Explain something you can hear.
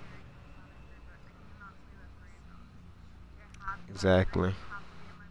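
A young man speaks close to a microphone, briefly raising his voice.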